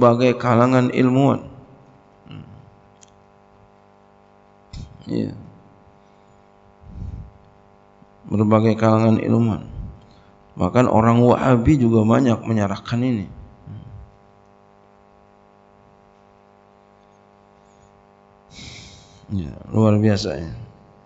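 A middle-aged man speaks calmly into a microphone, in phrases broken by pauses.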